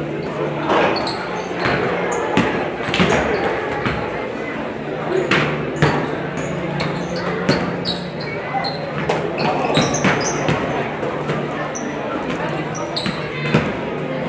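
Basketballs bounce on a wooden court in a large echoing gym.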